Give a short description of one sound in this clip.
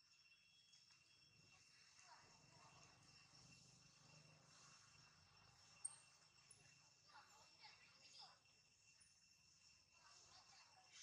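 A monkey gnaws and munches on a corn cob.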